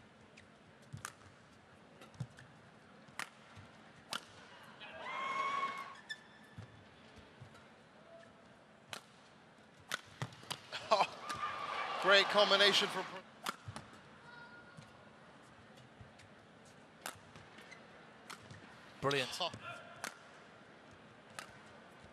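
A racket strikes a shuttlecock with sharp pops, back and forth.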